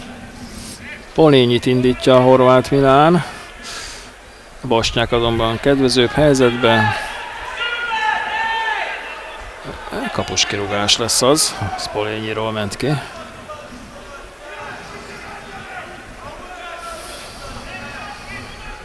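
A small crowd murmurs from the stands outdoors.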